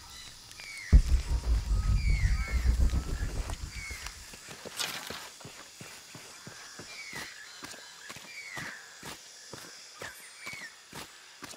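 Footsteps crunch on dirt and dry leaves at a steady walking pace.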